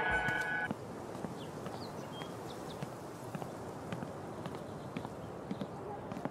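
Footsteps thud softly on wooden decking.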